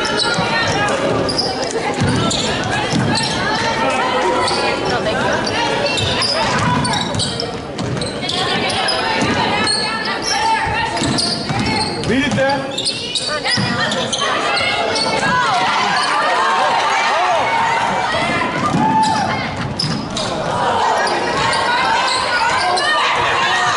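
Spectators talk and cheer throughout a large echoing gym.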